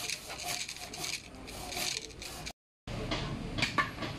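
A hand saw cuts through bamboo.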